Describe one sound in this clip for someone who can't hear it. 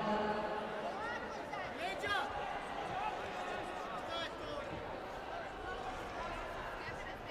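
Bare feet squeak and thud on a padded mat.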